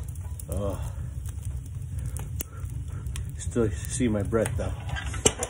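A wood fire crackles and pops in a stove.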